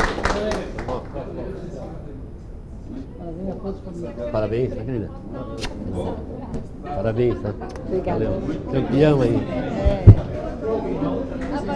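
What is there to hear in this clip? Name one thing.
Several people chatter in a room.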